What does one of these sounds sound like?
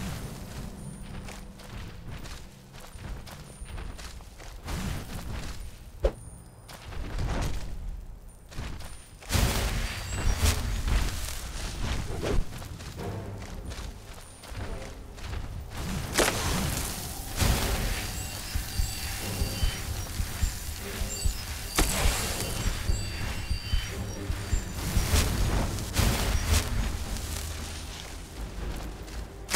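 A magic spell crackles and hums steadily.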